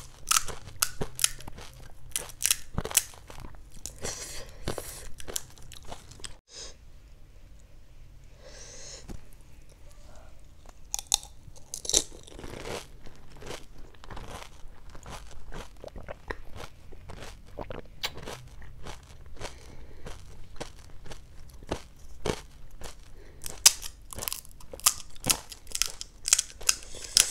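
Crisp puffed shells crack and crunch close up.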